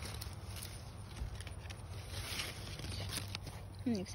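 Leaves rustle as they are brushed aside.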